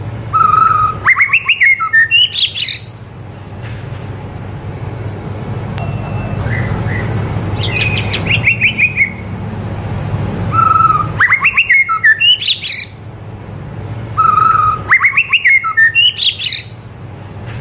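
A white-rumped shama sings bursts of loud whistled song.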